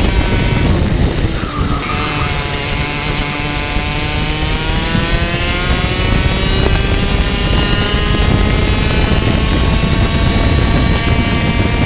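A kart engine whines loudly up close, rising in pitch as it speeds up.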